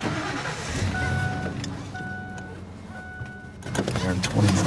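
A car's warning chime beeps repeatedly.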